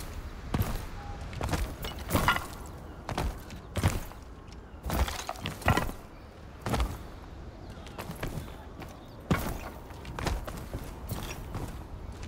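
Footsteps thud and scuff while someone climbs across stone and roof tiles.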